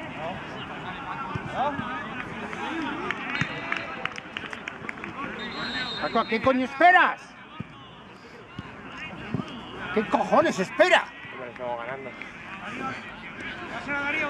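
Men shout and call out across an open outdoor sports field.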